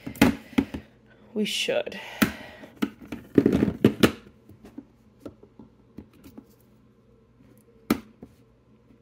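Plastic makeup palettes clatter and tap as they are moved around.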